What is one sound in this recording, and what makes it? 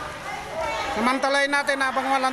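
A woman calls out loudly nearby.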